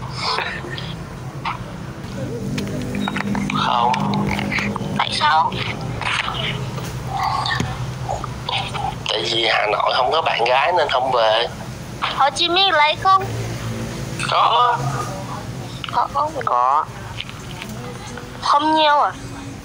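A young woman talks with animation close to a phone microphone.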